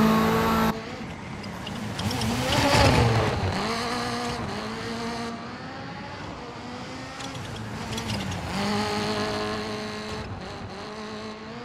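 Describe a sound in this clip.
A rally car engine revs hard and shifts gears as the car speeds past.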